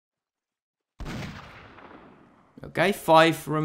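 A rifle fires once and the shot echoes away.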